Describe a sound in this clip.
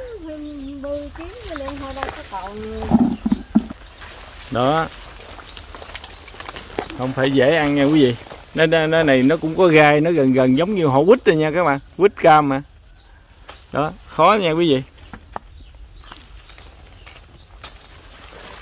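Leaves rustle as branches are pulled and fruit is picked.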